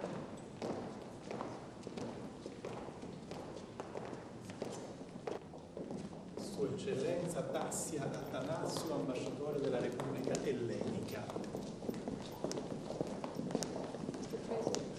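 Footsteps click on a hard floor in a large echoing hall.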